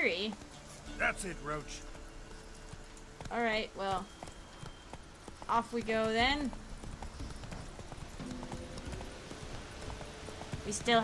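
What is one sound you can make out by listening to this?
A horse's hooves thud steadily on a dirt path.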